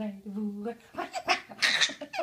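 A baby laughs loudly.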